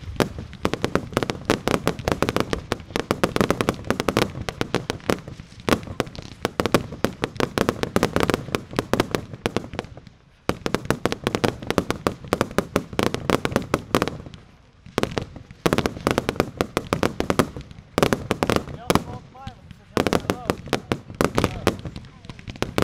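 Fireworks crackle and pop in rapid bursts outdoors.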